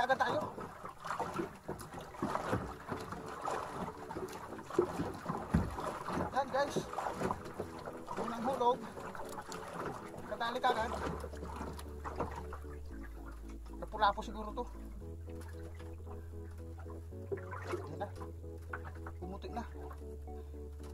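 Water splashes against a small boat outdoors.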